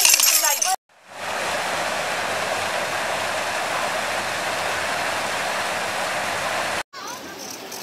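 A waterfall roars steadily.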